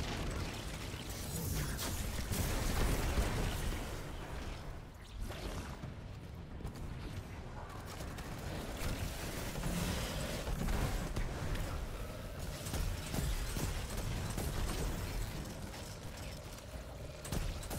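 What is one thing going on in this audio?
Explosions boom and crackle.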